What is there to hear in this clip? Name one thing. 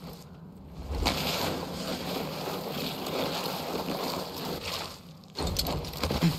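Wind rushes past during a slide down a slope.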